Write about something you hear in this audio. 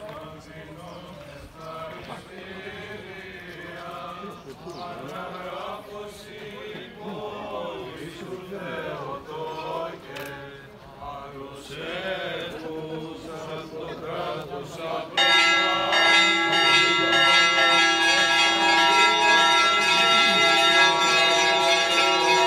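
A group of men chants together outdoors.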